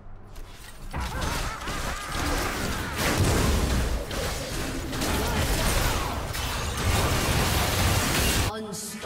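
Spell blasts crackle and whoosh in a fast fight.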